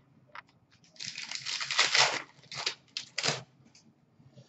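Plastic card sleeves rustle and scrape as they are handled.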